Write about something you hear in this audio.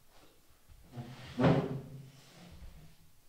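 A chair creaks and scrapes as a man stands up.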